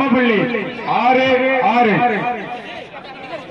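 A man shouts loudly near the microphone.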